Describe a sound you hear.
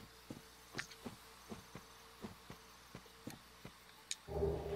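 Armoured footsteps crunch steadily over forest ground.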